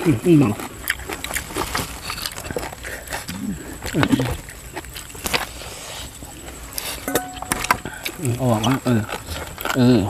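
Fresh leaves rustle as a man tears herbs.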